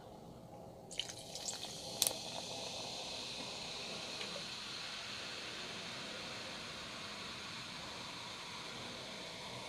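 Soda fizzes and crackles in a cup.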